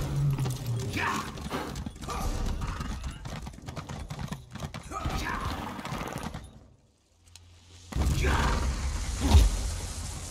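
A horse's hooves thud steadily as it runs over soft ground.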